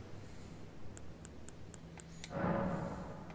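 Soft menu clicks tick in quick succession.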